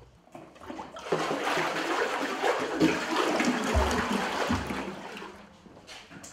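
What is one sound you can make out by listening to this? Water pours into a bucket.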